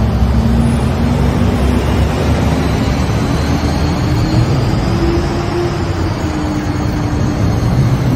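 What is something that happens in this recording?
A car drives past close by with a rushing engine.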